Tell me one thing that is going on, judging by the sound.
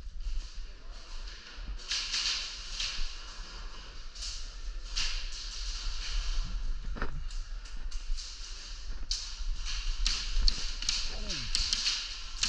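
Airsoft guns fire in quick bursts of sharp cracks in a large echoing hall.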